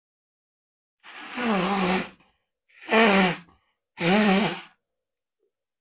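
A man blows his nose loudly into a tissue, close by.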